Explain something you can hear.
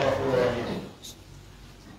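An elderly man speaks through a microphone in an echoing room.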